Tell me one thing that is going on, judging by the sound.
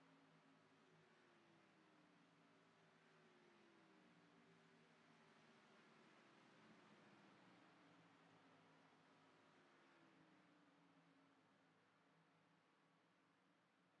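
A race car engine idles quietly, then fades.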